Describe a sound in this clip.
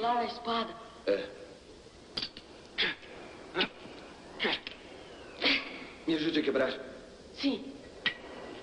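A young man speaks urgently, close by.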